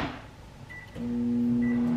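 A microwave oven hums steadily.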